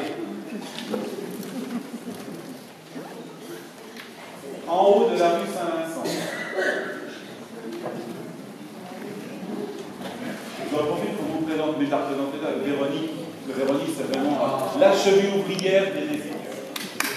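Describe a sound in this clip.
A man speaks with animation in a large echoing hall.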